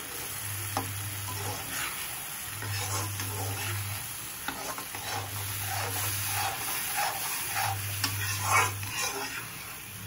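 A metal ladle scrapes and stirs around a metal pan.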